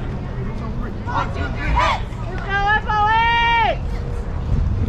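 A man calls out loudly from across an open field.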